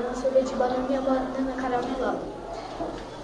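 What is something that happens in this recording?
A young girl speaks close by, in a high, clear voice.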